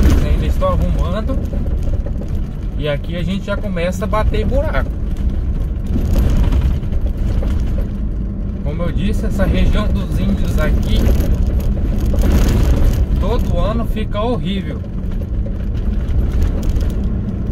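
Tyres roll and bump over a rough dirt road.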